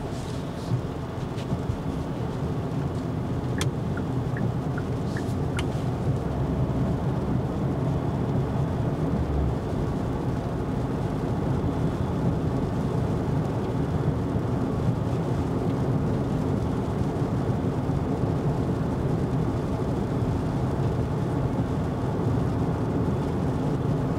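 Tyres hum and rumble steadily on a wet road, heard from inside a car.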